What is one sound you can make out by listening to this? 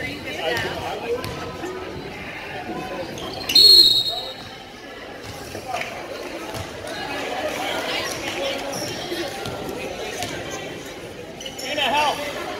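Spectators talk and call out nearby.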